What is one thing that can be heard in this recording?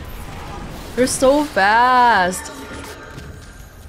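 A glowing creature bursts apart in a magical blast.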